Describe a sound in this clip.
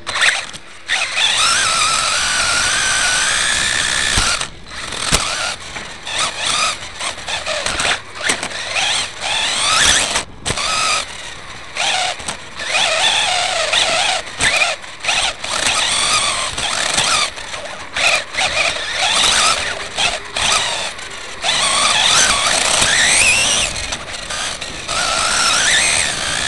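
A small electric motor whines, rising and falling in pitch as a model car races close by.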